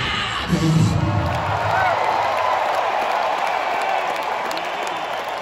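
A rock band plays loudly through big speakers in a large echoing hall.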